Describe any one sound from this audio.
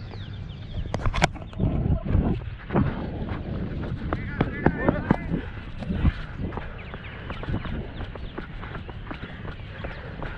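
Footsteps run fast on dry dirt.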